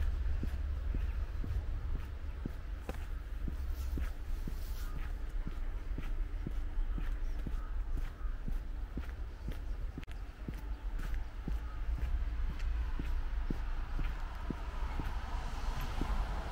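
Footsteps crunch steadily on packed snow.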